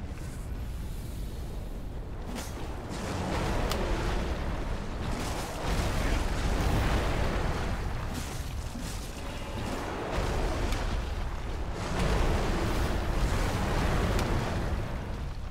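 A huge creature rumbles and thuds heavily nearby.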